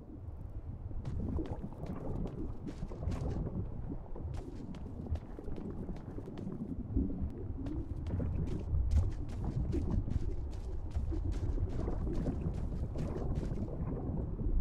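Footsteps tread quickly over rough ground.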